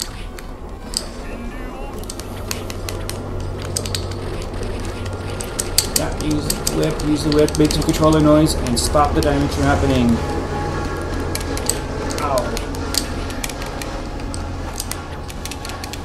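Video game music plays with a low pulsing beat.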